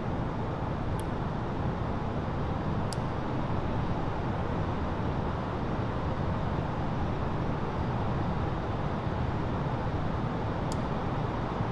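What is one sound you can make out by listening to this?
A cockpit switch clicks sharply a few times.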